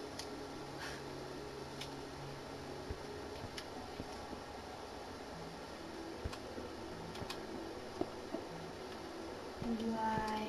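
Game blocks are placed with soft, short clicks.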